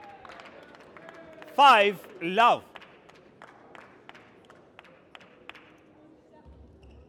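Spectators clap.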